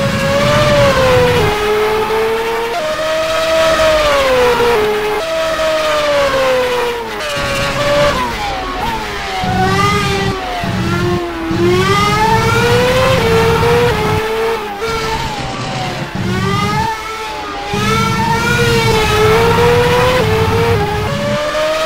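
A racing car engine screams at high revs, rising and falling as it shifts gears.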